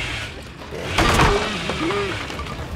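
Wooden planks crack and splinter.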